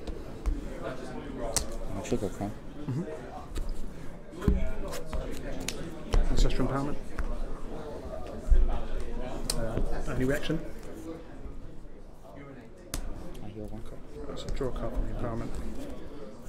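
Playing cards slide and tap softly on a cloth mat.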